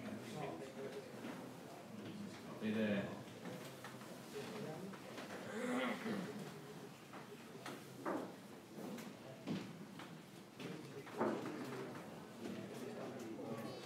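Men talk quietly in the background.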